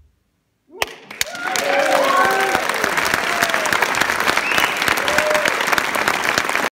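A large audience claps and cheers loudly in a big hall.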